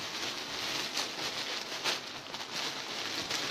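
Plastic-wrapped clothes rustle and crinkle as they are handled.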